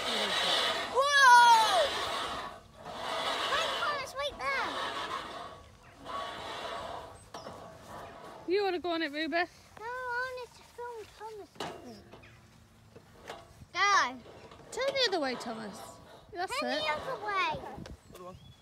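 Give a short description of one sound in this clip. A metal swing squeaks as it rocks.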